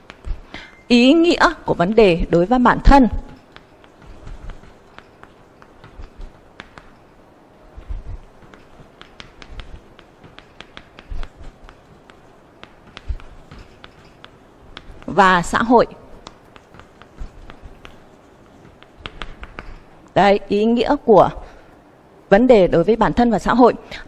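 A young woman speaks calmly in short bursts, close by.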